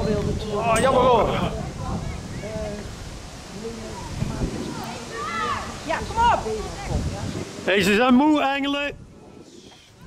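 Young players shout and call out to each other outdoors across an open field.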